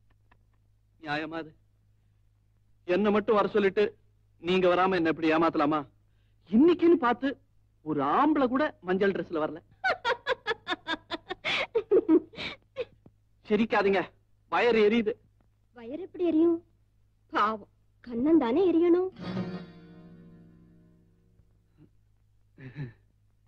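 A man speaks with animation into a telephone, close by.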